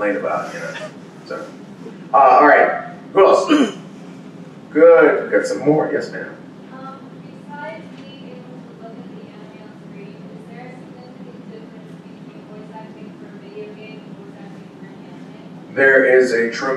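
A man speaks through a microphone into a room, in short bursts with pauses.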